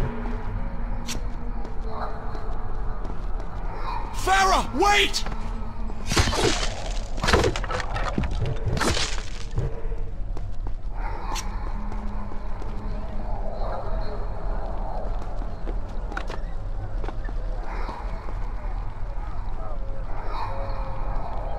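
Quick footsteps run over stone.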